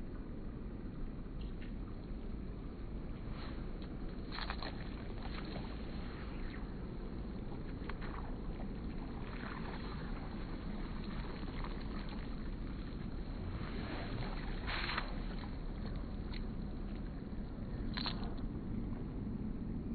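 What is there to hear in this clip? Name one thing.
A fishing line swishes through the air.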